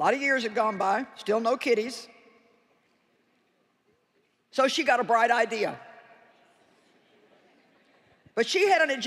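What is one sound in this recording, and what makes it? A woman speaks expressively through a microphone, with a large hall's echo trailing after her words.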